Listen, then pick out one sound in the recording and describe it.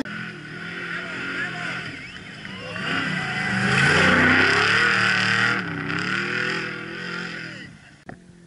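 A race truck engine roars past at speed, loudest midway, then fades.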